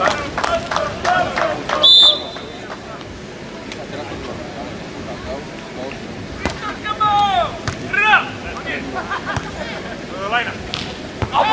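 A crowd of spectators calls out and chatters outdoors.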